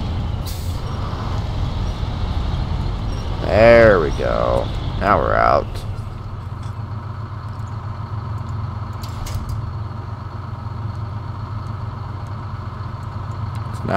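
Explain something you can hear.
A heavy diesel truck engine rumbles at idle.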